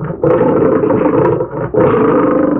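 A lion roars loudly.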